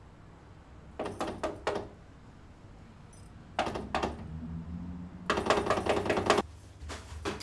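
A metal gate rattles and clanks as it is unlocked and opened.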